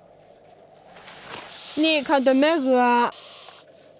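A snake hisses loudly.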